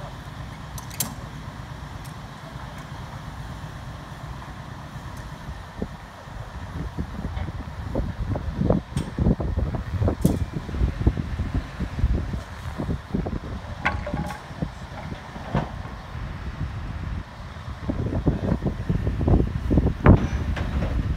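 Metal clanks and knocks as workers handle a load.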